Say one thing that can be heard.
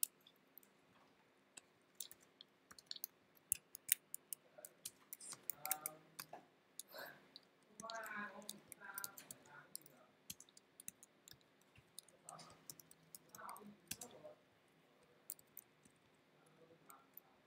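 Keys click on a computer keyboard in quick bursts.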